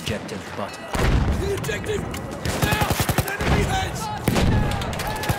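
A rifle fires a sharp shot.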